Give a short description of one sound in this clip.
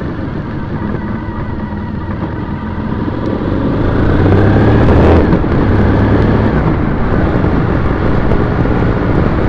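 Wind buffets loudly as the rider moves along, growing stronger.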